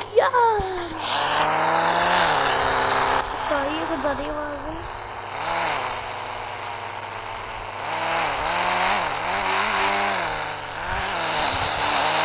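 A car engine revs and hums as the car drives off.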